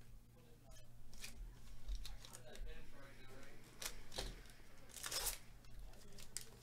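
Gloved hands tear open a foil card pack with a crinkle.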